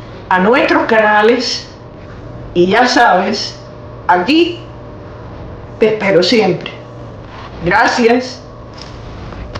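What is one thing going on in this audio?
An elderly woman speaks calmly and close to a microphone, in short phrases with pauses.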